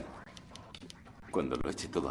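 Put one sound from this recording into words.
A man speaks sharply nearby.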